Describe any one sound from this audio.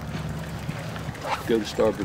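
A paddle dips and splashes in water.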